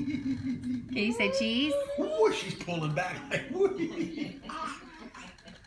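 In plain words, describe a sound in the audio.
A toddler laughs and squeals close by.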